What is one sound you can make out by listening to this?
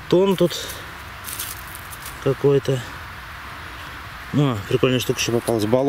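Dry leaves and twigs rustle as a hand picks something up from the ground.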